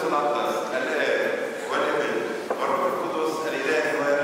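A man chants in a steady voice through a microphone.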